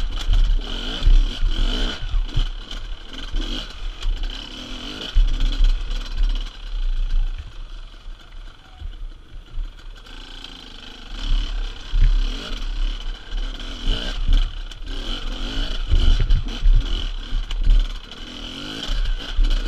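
A dirt bike engine revs and sputters up close.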